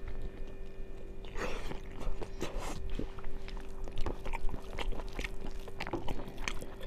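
A young woman chews and smacks her lips loudly, close to a microphone.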